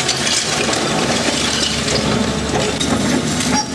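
Bricks crash and tumble as an excavator bucket smashes a wall.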